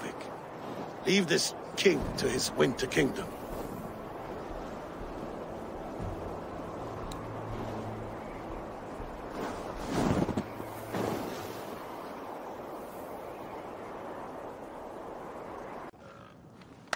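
Wind blows steadily across open snow.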